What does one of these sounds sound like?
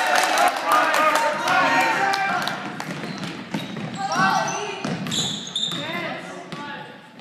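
A basketball bounces on a hard floor, echoing in a large hall.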